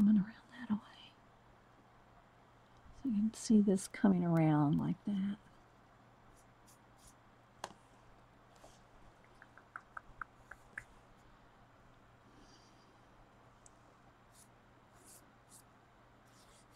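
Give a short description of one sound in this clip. Paper crinkles softly under pressing hands.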